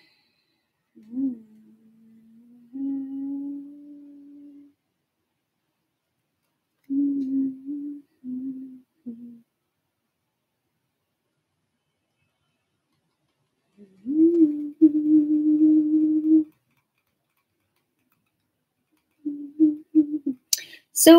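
A young woman hums long, steady low notes close to a microphone.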